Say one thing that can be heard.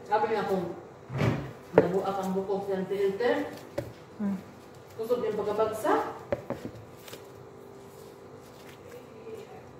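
Gloved hands knead and squish dough in a bowl.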